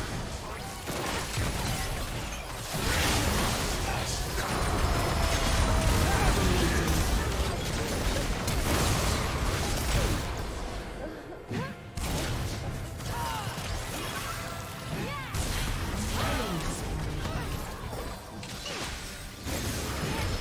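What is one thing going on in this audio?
Game spell effects crackle and explode in a fast fight.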